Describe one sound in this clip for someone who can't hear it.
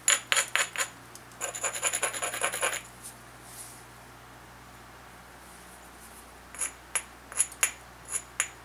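A hammerstone taps and clicks sharply against a stone flake.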